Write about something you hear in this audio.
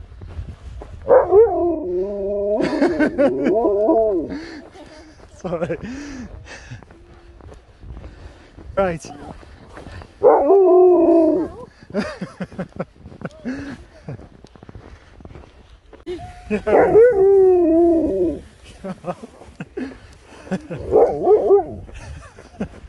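A husky howls and yowls close by.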